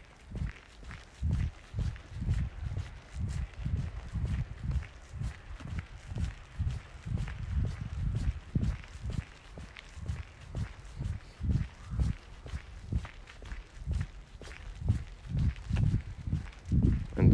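Footsteps tread steadily on a paved path outdoors.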